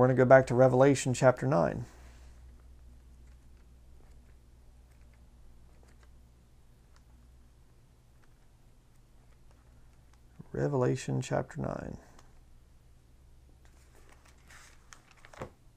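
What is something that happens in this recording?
Thin pages rustle as a man leafs through a book.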